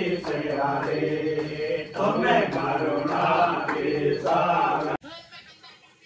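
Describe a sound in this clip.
Several adults sing a chant together.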